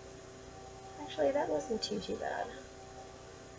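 A young woman speaks casually, close to the microphone.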